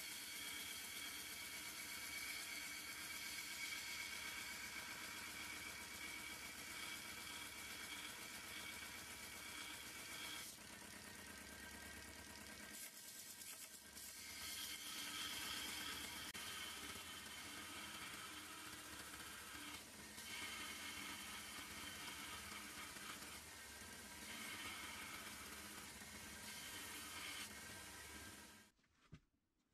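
An electric belt grinder motor hums steadily.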